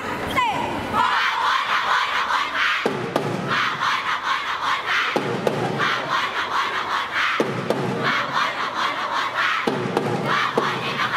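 Upbeat music with a steady beat plays loudly over loudspeakers.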